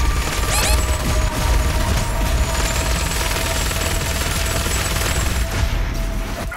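An electric gun crackles and zaps.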